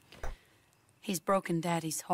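A woman speaks sadly, heard as a game character.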